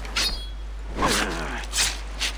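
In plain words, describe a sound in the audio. An animal's hide tears wetly as it is skinned.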